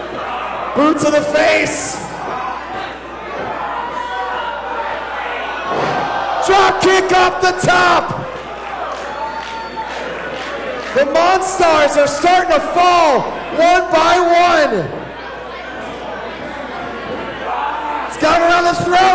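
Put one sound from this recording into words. A large crowd chants loudly in rhythm.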